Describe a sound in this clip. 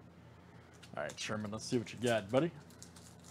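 A foil card pack tears open.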